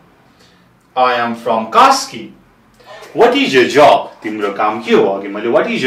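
A young man speaks clearly and steadily, close by.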